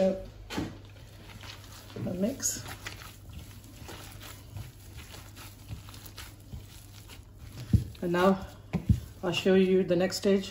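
Gloved hands squish and knead a soft food mixture.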